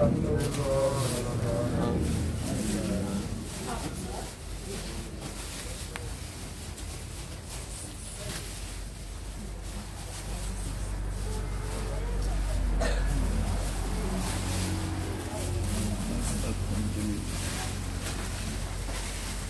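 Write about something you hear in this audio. Plastic bags rustle as they are handed over.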